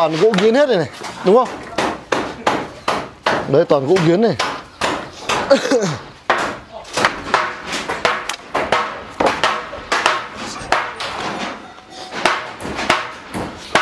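Wooden boards knock and scrape as they are lifted.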